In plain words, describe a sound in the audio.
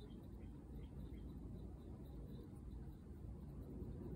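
A cotton swab scrubs softly.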